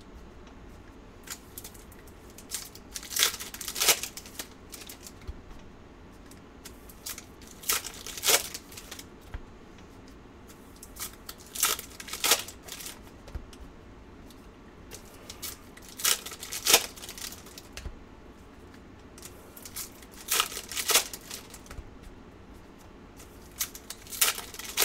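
Trading cards are shuffled and slapped down on a table.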